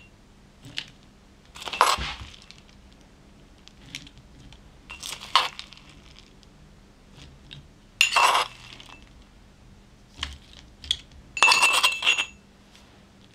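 A metal spoon scrapes and clinks against a ceramic bowl.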